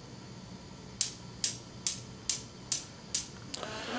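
A small mechanical device clicks at a steady pace.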